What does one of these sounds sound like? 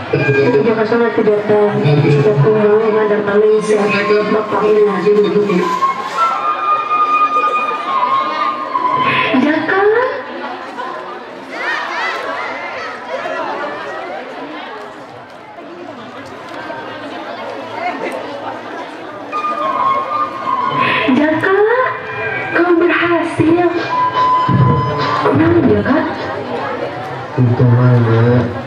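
Music plays loudly over outdoor loudspeakers.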